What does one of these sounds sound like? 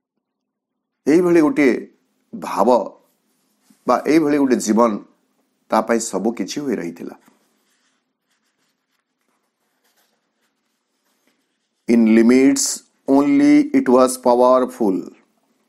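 A man speaks calmly and close up, in short phrases with pauses.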